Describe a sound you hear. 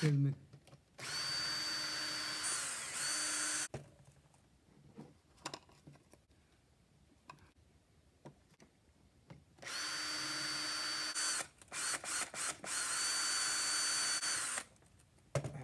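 A cordless drill whirs as it bores into wood.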